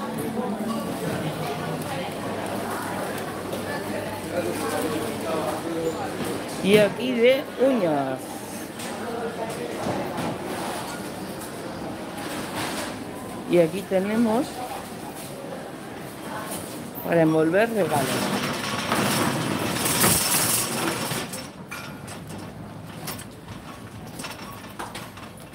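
A shopping cart's wheels rattle and rumble over a hard floor.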